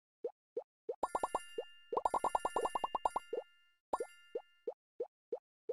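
A bright game chime rings as coins are collected.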